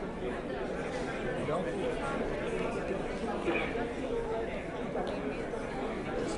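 A middle-aged woman talks quietly nearby.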